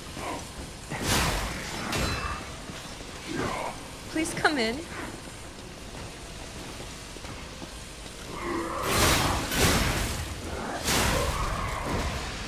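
Metal blades clash and slash in a fight.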